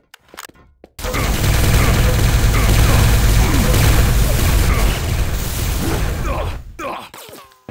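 A plasma gun fires rapid bursts of shots.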